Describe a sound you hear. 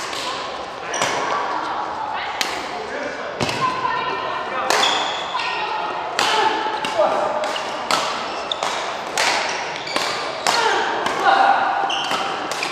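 Sports shoes squeak sharply on a hard court floor.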